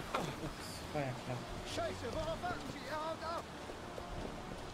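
A young man shouts urgently.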